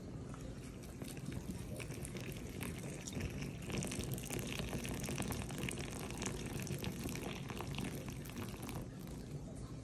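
Flaming liquid pours into a glass with a soft whoosh and crackle.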